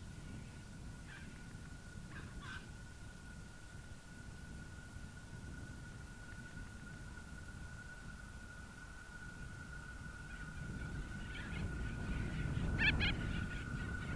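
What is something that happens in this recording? Birds chirp nearby.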